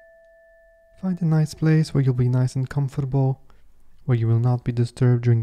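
A man speaks calmly and softly, close to a microphone.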